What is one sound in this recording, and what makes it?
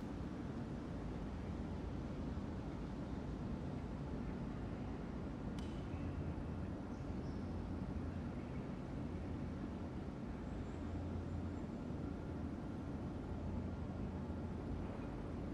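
A ceiling fan whirs with a steady low hum.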